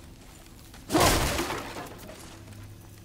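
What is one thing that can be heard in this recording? Wooden planks crack and clatter as they are smashed.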